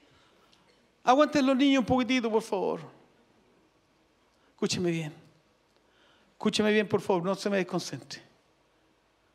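A middle-aged man speaks with emphasis into a microphone, heard through loudspeakers in pauses between phrases.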